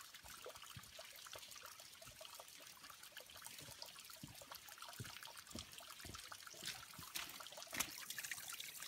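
Footsteps crunch on a forest trail.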